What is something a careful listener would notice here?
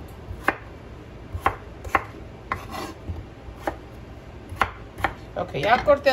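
A knife chops on a wooden cutting board.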